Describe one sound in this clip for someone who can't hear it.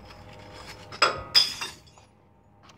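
A glass bottle drops into a bottle bank and smashes inside.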